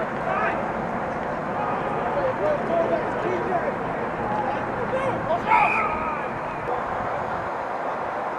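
Men shout and call out outdoors, some near and some farther off.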